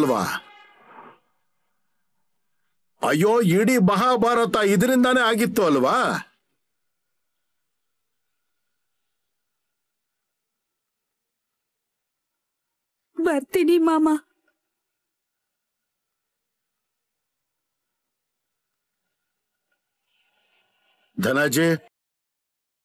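A woman speaks tearfully and pleadingly, close by.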